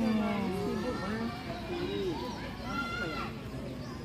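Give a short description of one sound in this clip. Children and adults chatter nearby outdoors.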